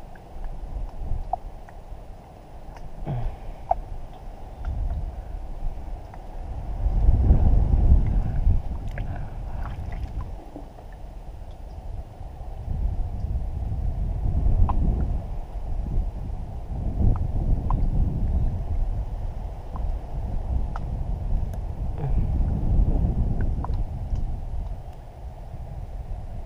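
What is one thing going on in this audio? Water laps gently against a small boat's hull.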